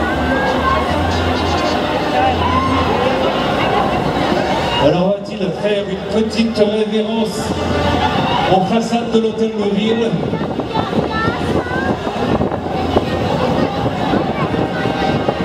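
A large crowd chatters outdoors.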